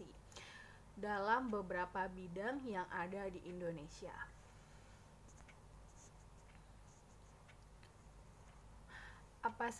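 A woman speaks calmly into a microphone, close by.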